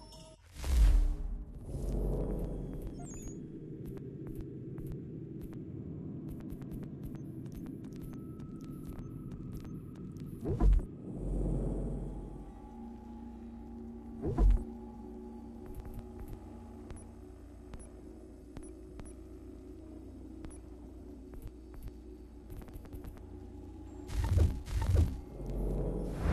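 Menu selections click and whoosh.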